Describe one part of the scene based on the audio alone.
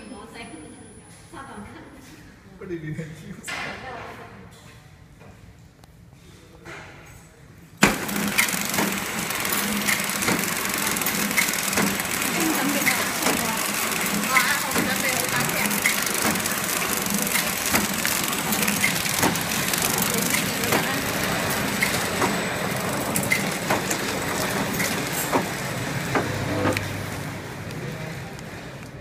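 A packaging machine hums and clatters steadily, growing much louder partway through.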